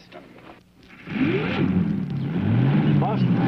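A car engine starts and runs.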